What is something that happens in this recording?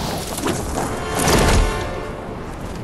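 A glider snaps open with a whooshing flutter.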